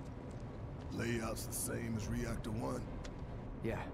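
A man with a deep voice asks a question.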